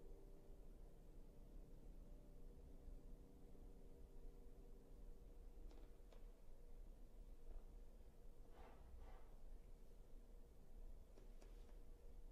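A piano plays softly in a large echoing hall.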